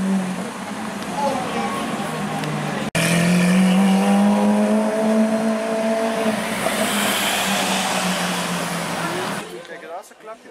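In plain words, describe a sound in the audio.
A sports car engine roars loudly and rises in pitch as the car pulls away down a street.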